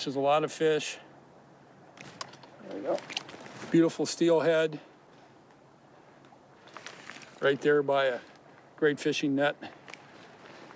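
A man talks calmly close by, in short phrases.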